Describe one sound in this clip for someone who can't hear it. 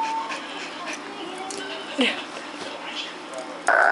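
A small dog sniffs and snuffles close by.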